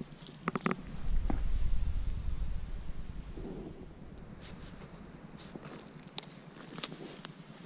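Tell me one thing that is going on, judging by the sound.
Footsteps crunch on dry forest floor.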